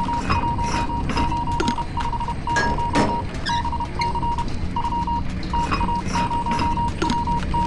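A machine clatters and beeps in short, repeated bursts as it is worked.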